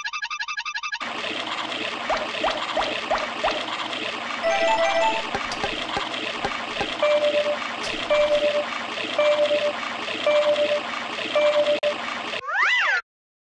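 Upbeat electronic game music plays.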